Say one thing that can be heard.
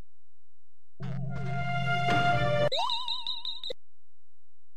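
A bright electronic jingle plays with rising chimes.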